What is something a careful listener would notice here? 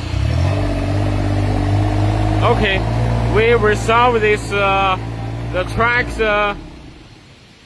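A small engine runs with a steady low rumble.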